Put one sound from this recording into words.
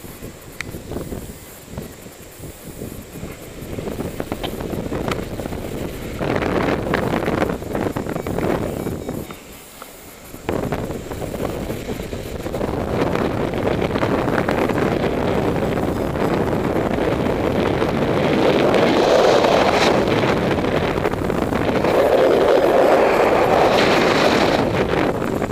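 Wind rushes and gusts past a paraglider pilot in flight.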